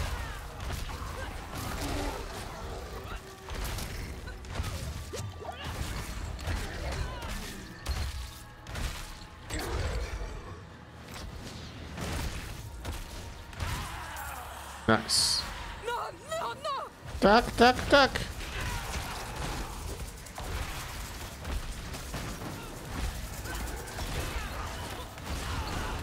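Game combat sounds clash and thud with spells and hits.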